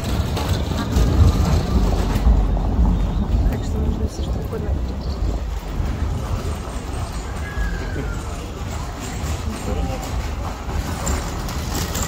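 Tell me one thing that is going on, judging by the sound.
A crowd murmurs in the distance.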